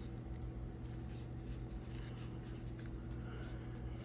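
Fingers handle a strip of glitter cardstock, making faint rustles.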